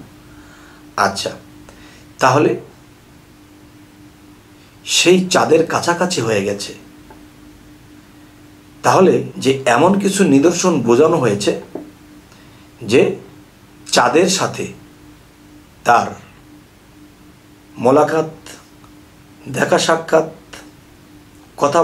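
A middle-aged man speaks slowly and calmly into a close microphone, with long pauses.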